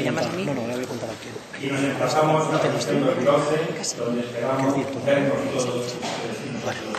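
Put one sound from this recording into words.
A man speaks steadily through a microphone and loudspeakers in a large echoing hall.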